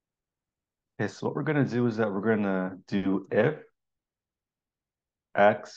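A man speaks calmly through a computer microphone.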